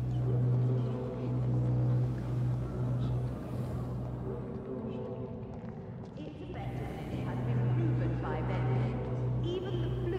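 Footsteps walk slowly over stone.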